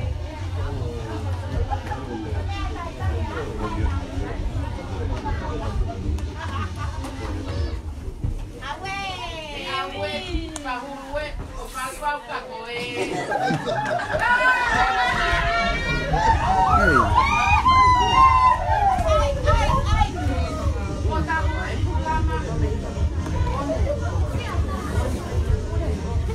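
Several women and men chatter in a crowded room.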